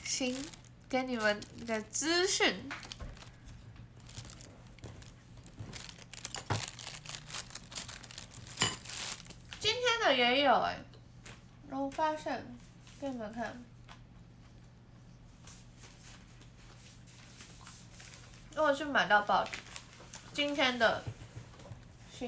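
A young woman talks close to a microphone in short bursts, with animation.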